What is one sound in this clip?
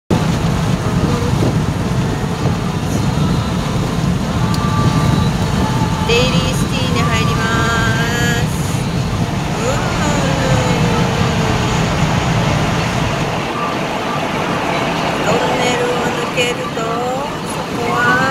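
Tyres roar steadily on a motorway from inside a moving car.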